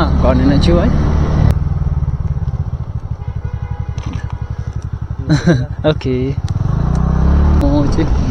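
A motorcycle engine rumbles and putters steadily close by.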